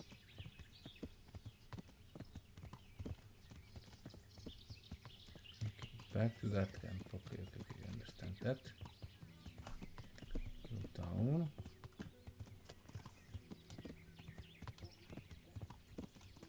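Horse hooves clop steadily along a dirt path.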